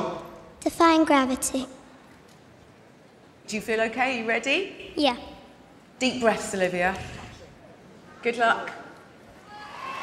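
A young girl sings softly into a microphone in a large hall.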